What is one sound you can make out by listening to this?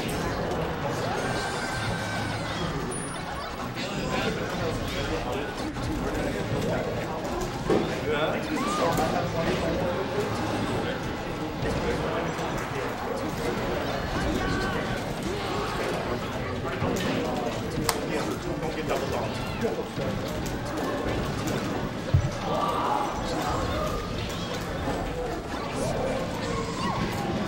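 Video game fighting sound effects bang and whoosh steadily.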